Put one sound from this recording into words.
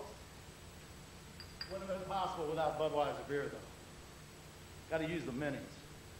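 Glass bottles clink together as they are picked up.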